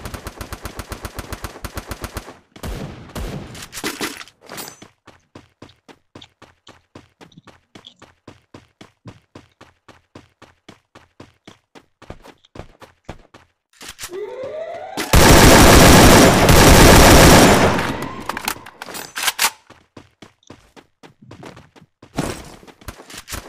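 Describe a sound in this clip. Footsteps thud quickly as someone runs over grass.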